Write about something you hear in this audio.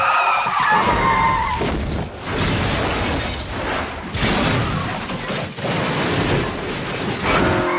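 A car crashes and rolls over logs with a loud metal crunch.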